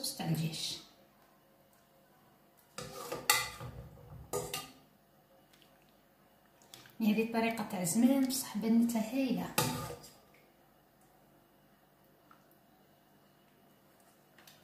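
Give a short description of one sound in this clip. Sauce splashes from a ladle onto food in a metal tray.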